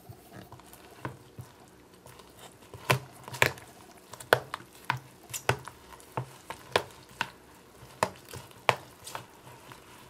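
A plastic spoon scrapes and taps against a plastic tub.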